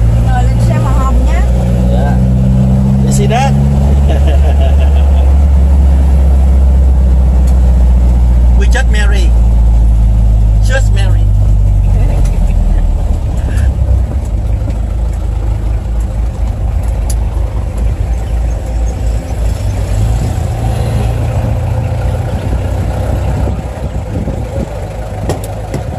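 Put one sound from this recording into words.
A 1955 Chevrolet rumbles along as it drives.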